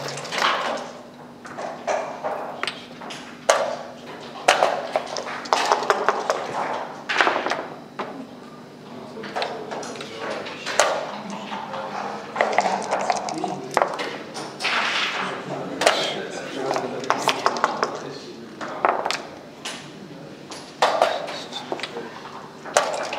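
Dice rattle in a leather cup.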